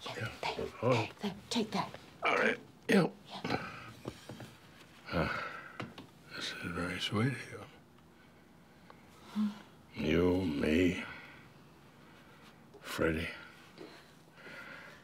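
An elderly man speaks quietly and slowly nearby.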